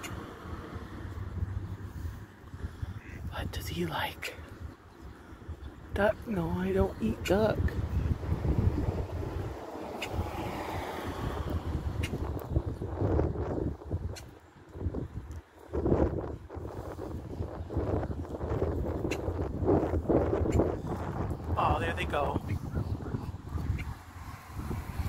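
Ducklings peep.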